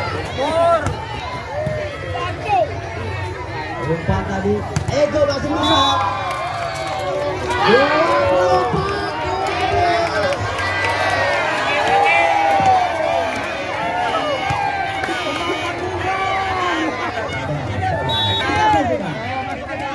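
A volleyball is struck with loud slaps.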